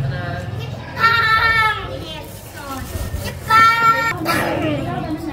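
A young child calls out loudly nearby.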